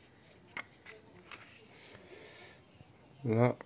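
Glossy magazine pages rustle as they are turned by hand.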